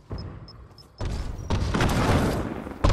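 Wooden boards clatter loudly as walls are built.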